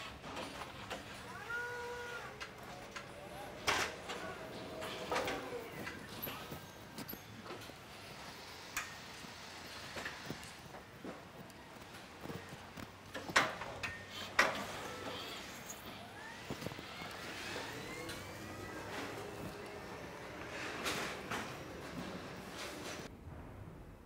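An electric forklift hums and whines as it moves and lifts.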